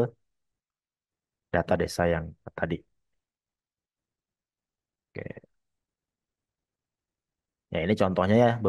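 A young woman speaks calmly over an online call, in short phrases with pauses.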